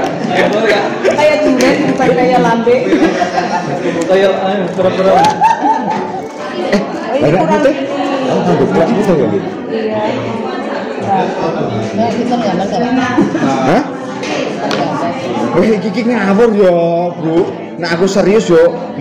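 Several men and women talk and laugh together close by.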